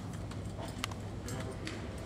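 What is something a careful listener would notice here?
A finger presses a lift button with a soft click.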